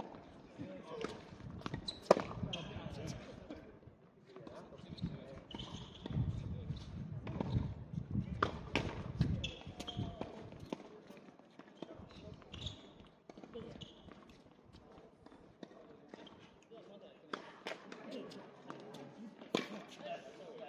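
Tennis balls are hit with rackets, giving sharp pops.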